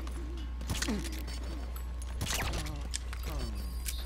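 Fists strike a body with heavy thuds.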